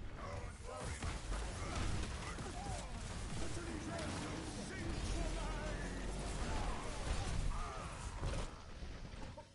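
Gunfire and weapon effects sound from a video game battle.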